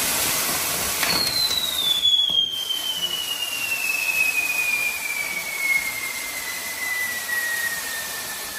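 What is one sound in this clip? A firework whistles in a long, slowly falling tone.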